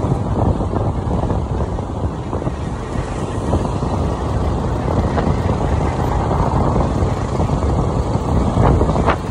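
Wind buffets a microphone on a moving motorcycle.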